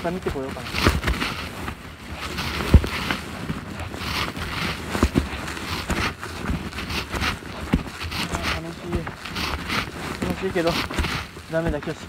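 Footsteps crunch and rustle through dry leaves outdoors.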